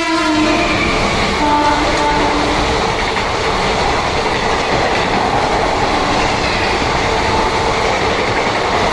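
A fast train thunders past with a rushing roar.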